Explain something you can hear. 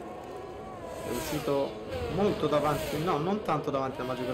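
A racing car engine revs hard, rising and falling in pitch.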